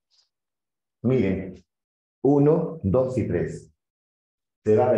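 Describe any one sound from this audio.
A man speaks calmly and clearly, as if lecturing, close to a microphone.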